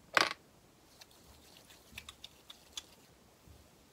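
Hands rub together softly.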